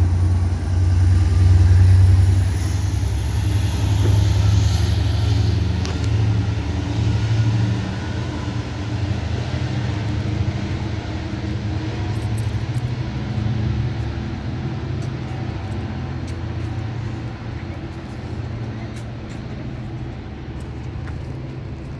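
A train rumbles low nearby and slowly fades.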